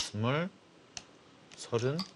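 A game stone clicks onto a wooden board.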